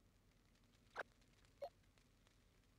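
Short game menu blips sound as a selection changes.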